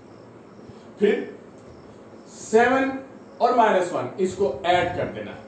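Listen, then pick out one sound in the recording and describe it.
A man speaks calmly and clearly, as if explaining, close by.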